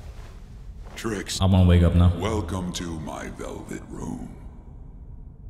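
An elderly man speaks slowly in a deep, sinister voice.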